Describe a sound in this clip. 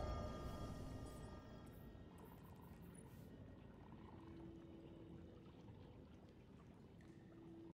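Soft game menu sounds chime and hum.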